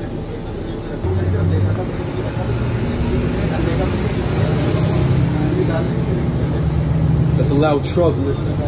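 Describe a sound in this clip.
A bus engine grows louder as the bus pulls away.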